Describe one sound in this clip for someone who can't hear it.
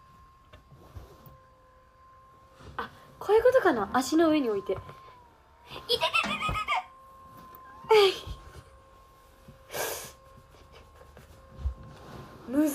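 A cushion thumps softly against a sofa.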